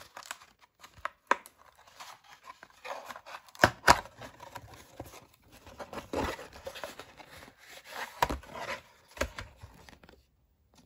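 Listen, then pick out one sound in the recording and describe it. Cardboard packaging rustles and crinkles as hands handle it.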